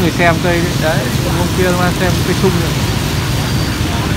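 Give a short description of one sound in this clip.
Motorbikes hum as they pass by on a wet street.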